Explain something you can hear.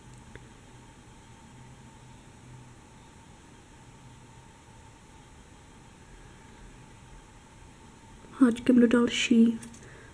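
A metal crochet hook softly taps and scrapes against small beads.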